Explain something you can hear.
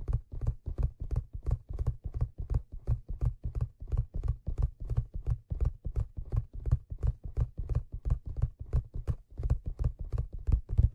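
Fingers tap and scratch rapidly on a leather cap close to a microphone.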